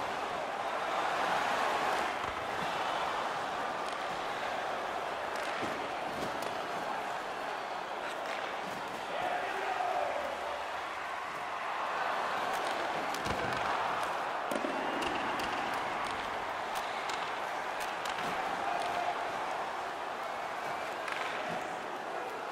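Sticks click against a puck.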